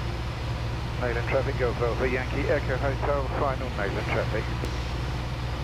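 A man speaks over a headset intercom.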